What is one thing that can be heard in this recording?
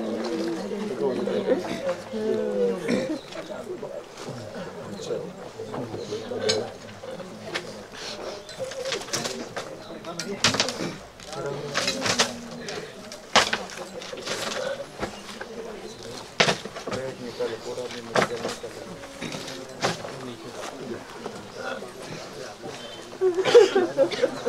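A crowd of men and women murmur and talk nearby, outdoors.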